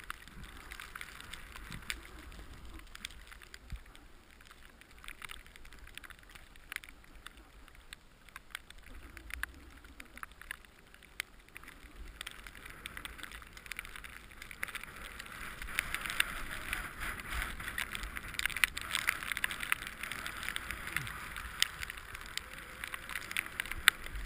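A snowboard scrapes and hisses over snow close by.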